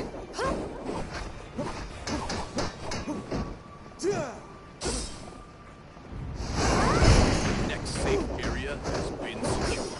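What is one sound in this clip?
Gunfire and blasts crack in a game.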